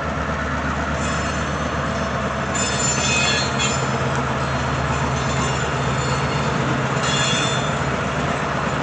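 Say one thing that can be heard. Train wheels squeal and clatter on the rails.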